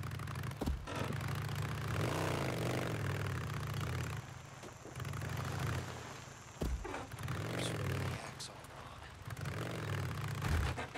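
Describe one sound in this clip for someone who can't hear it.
A motorcycle engine rumbles and revs unevenly.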